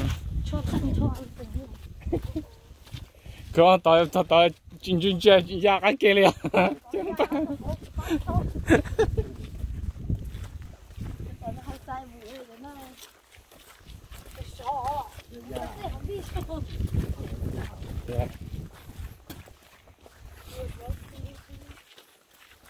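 Footsteps crunch on a dirt trail.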